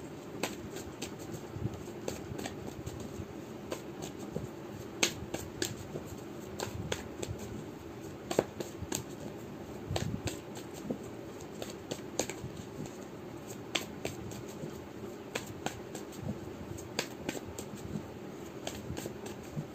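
Playing cards riffle and tap softly as a deck is shuffled in hand.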